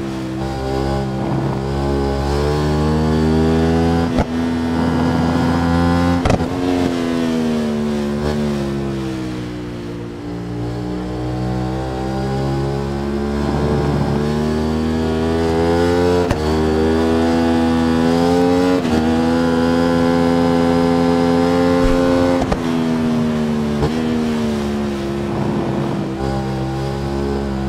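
A motorcycle engine roars, rising and falling in pitch as it speeds up and slows for corners.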